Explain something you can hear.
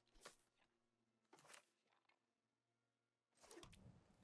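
A digital card game chimes and whooshes as a card is played.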